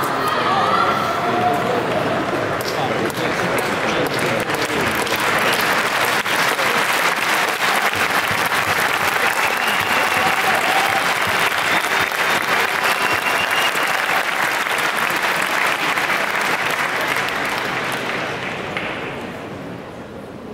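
A large crowd cheers and chatters loudly in an echoing hall, then dies down.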